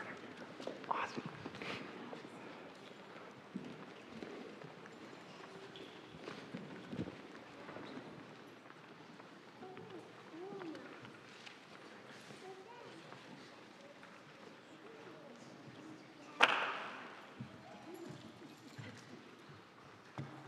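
A congregation murmurs and shuffles in a large echoing hall.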